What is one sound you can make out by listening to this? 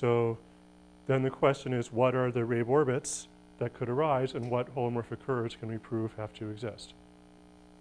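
A man lectures calmly, heard through a microphone.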